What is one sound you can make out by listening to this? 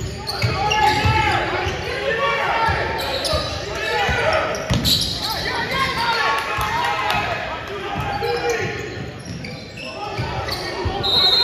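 A basketball bounces on a hard gym floor.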